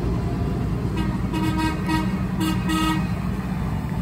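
A tractor horn honks several short times.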